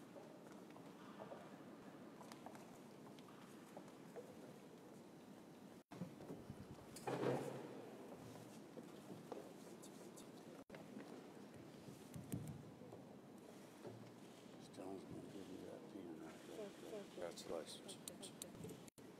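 People murmur quietly in a large echoing hall.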